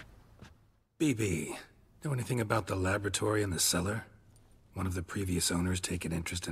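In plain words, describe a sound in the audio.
A man with a deep, gravelly voice speaks calmly.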